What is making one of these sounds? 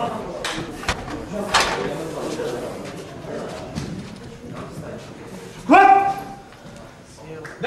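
People talk and murmur in the background.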